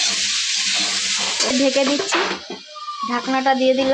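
A metal lid clanks onto a pan.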